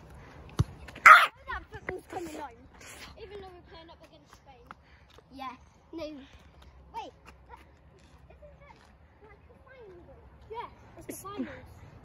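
A young boy talks and laughs close by, excitedly.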